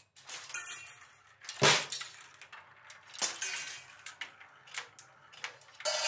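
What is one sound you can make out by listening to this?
Metal beaters strike a snare drum with sharp hits.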